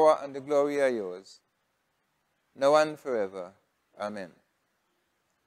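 An elderly man speaks slowly and solemnly into a close microphone, as if praying.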